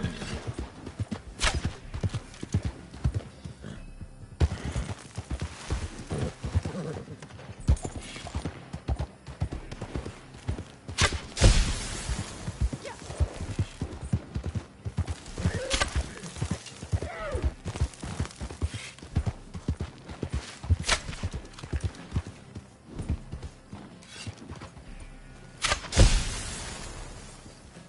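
Horse hooves thud steadily on dry ground.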